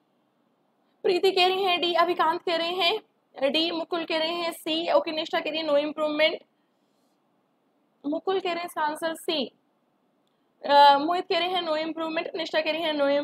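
A young woman speaks calmly into a close microphone.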